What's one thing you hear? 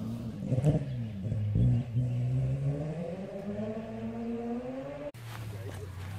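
A car engine roars off into the distance and fades away.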